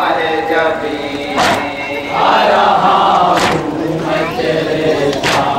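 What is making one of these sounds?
A man sings a lament loudly through a microphone and loudspeakers.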